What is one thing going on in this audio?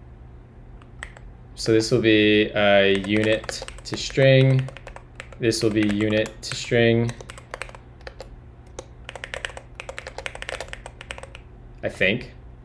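Keyboard keys clatter in quick bursts of typing.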